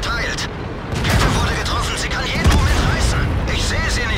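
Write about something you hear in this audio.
A shell explodes with a heavy blast.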